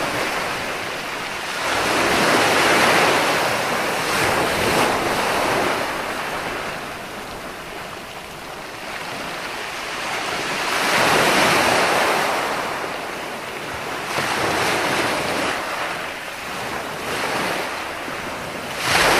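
Waves break and wash up on a shore in swelling rushes.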